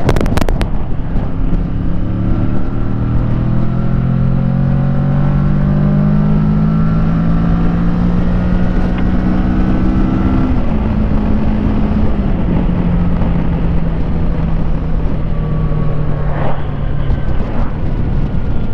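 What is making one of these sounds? A motorcycle engine hums and rises steadily in pitch as it speeds up.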